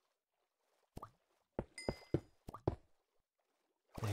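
Blocks are set down with short soft knocks.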